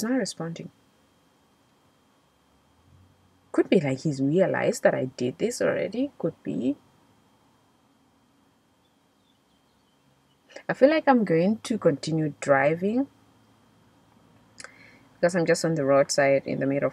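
A young woman speaks calmly and close by, in pauses.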